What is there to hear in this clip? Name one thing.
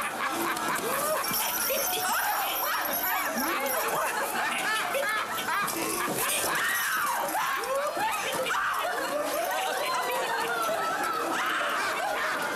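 A crowd of men and women laugh and shout with excitement close by.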